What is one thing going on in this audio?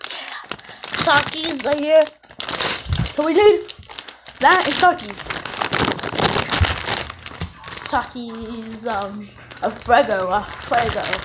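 A boy talks with animation close to the microphone.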